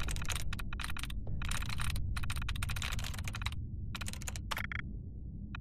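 A computer terminal chatters with quick bursts of rapid clicks.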